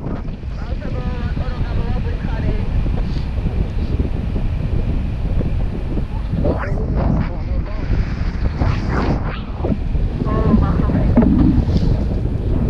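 A young woman speaks briefly and excitedly, close by.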